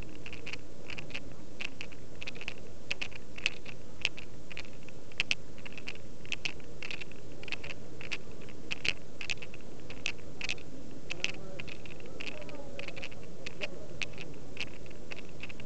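A crowd of men murmurs softly in a large echoing hall.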